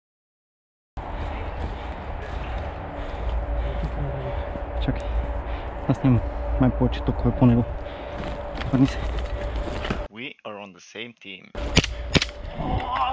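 Footsteps crunch through dry twigs and brush.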